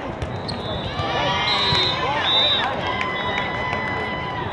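Young women shout and cheer together.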